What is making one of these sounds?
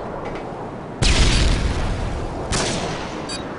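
A rifle fires loud single shots that echo.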